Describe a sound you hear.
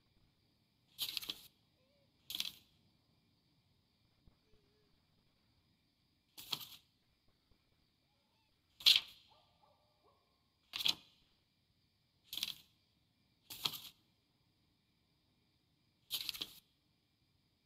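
Paper pages flip quickly, now and then.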